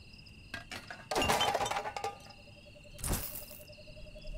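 Rubbish rustles and clatters as it is rummaged through in a metal bin.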